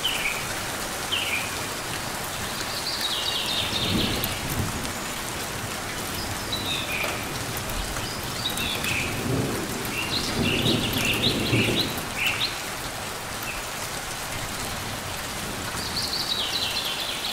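A small bird chirps in short, high bursts.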